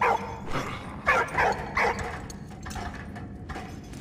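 Wooden ladder rungs creak under climbing steps.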